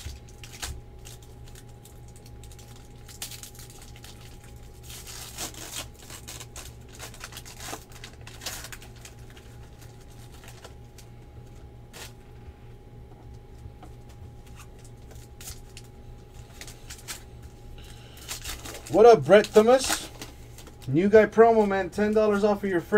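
Trading cards rustle and slide against each other.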